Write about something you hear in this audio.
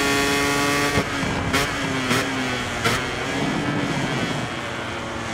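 A motorcycle engine drops in pitch as the rider brakes and downshifts.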